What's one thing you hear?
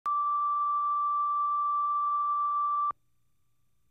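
A steady high-pitched test tone sounds and then cuts off abruptly.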